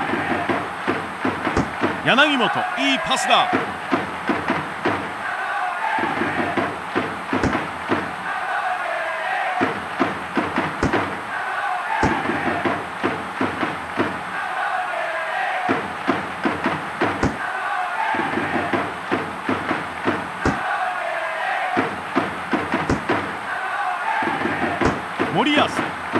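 A stadium crowd cheers steadily throughout.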